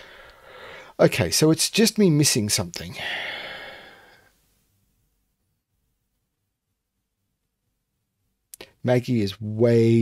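A middle-aged man speaks thoughtfully into a close microphone, pausing at length.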